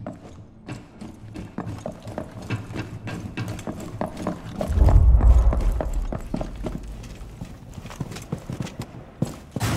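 Footsteps patter quickly on a hard floor.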